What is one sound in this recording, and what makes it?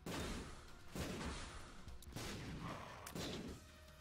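A bomb explodes with a deep, booming blast.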